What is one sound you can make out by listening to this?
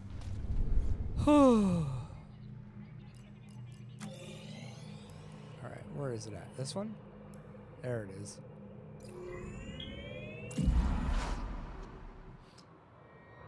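Electronic whooshes and chimes sound as a menu opens and closes.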